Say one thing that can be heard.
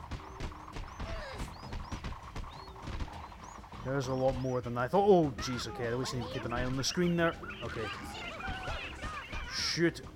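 Cartoonish punches and blows land with quick, sharp thuds.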